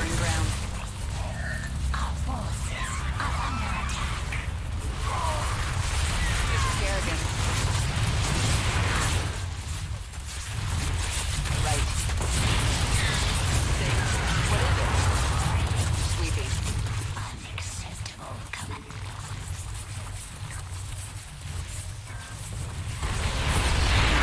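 A young man talks into a microphone with animation.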